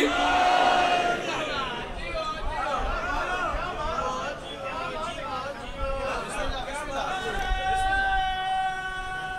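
A man sings a loud, drawn-out lament through a microphone, in an echoing space.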